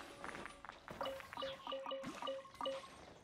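Short chiming pickup tones ring out in quick succession.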